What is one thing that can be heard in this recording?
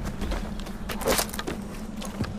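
A branch snaps as it is pulled from a tree.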